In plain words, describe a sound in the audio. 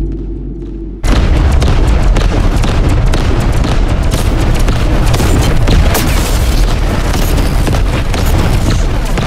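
Energy weapons fire in rapid, crackling bursts.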